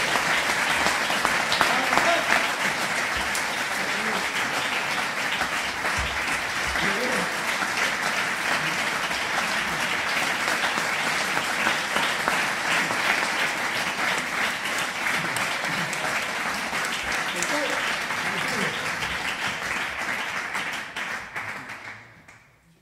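Applause of many clapping hands fills a room, then fades away.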